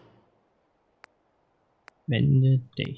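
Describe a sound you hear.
Short soft clicks sound as a game menu changes selection.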